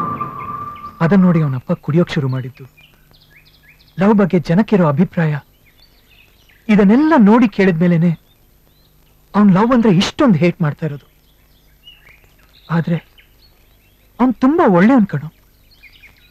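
A man speaks firmly, close by, in short bursts.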